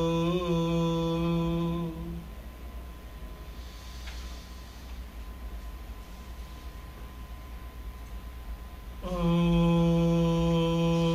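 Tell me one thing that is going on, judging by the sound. A man sings long, steady held notes close by.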